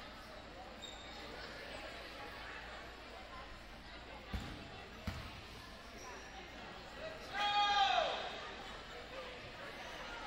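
A crowd murmurs softly in the stands.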